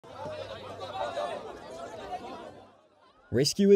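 A crowd of men murmur and talk together outdoors.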